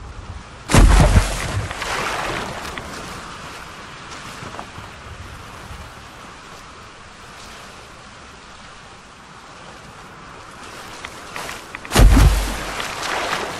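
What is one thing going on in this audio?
Something splashes heavily into water.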